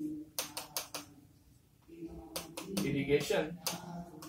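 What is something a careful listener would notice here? A stylus taps and scrapes on a glass board.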